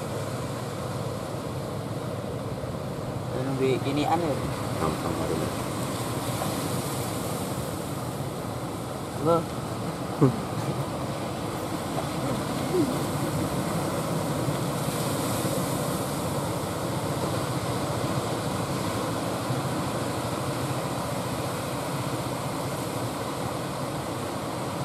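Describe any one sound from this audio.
Small waves wash onto the shore.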